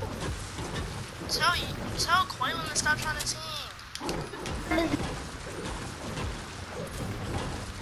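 A pickaxe strikes a wall with sharp knocks.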